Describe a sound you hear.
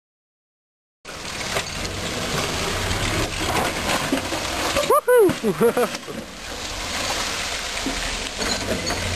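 An off-road vehicle's engine labours as it climbs a bumpy dirt slope.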